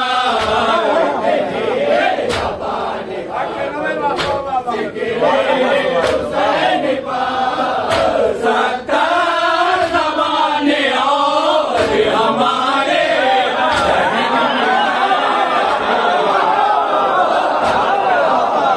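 A crowd of men chants along in unison.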